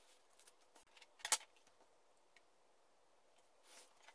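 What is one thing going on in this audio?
A steel ruler is set down on paper with a light clack.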